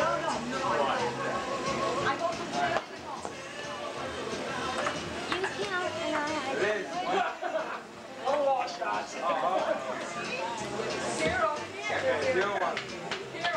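Several men and women chat and laugh nearby outdoors.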